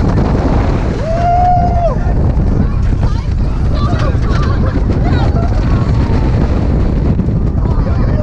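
Young people scream on a roller coaster.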